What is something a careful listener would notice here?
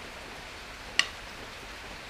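Chopsticks click against a plate.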